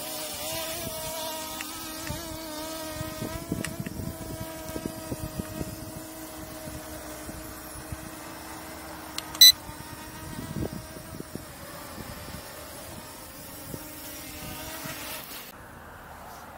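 A drone buzzes overhead with a steady high hum.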